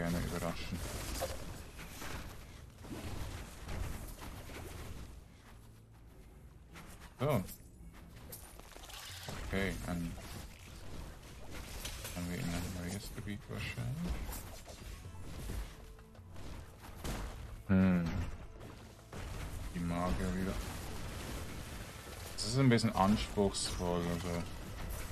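Magic spells burst and crackle amid clashing weapons in a fight.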